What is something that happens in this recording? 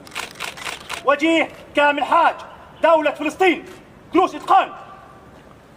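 A man shouts loud military commands outdoors.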